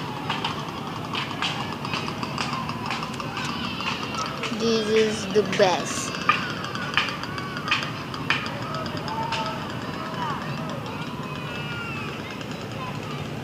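Motorbikes ride past on a busy street below.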